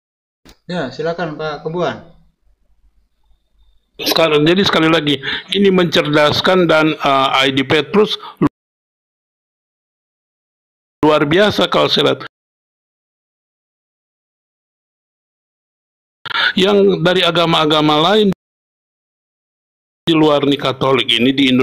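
A man speaks with animation over an online call, in bursts with pauses.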